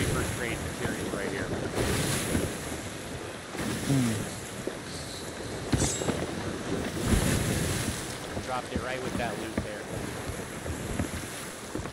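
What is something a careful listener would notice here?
Sea waves wash and splash against a wooden ship's hull.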